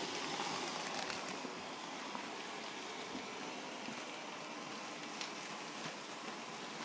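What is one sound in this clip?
An electric blower fan whirs steadily.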